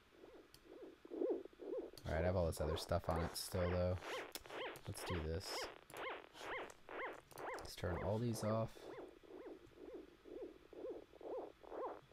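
Electronic synthesizer tones pulse in a quick, steady rhythm.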